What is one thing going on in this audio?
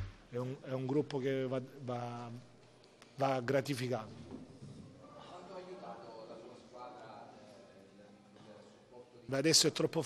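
A man speaks calmly into microphones.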